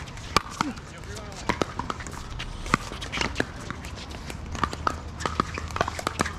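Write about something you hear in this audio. A plastic ball bounces on a hard court.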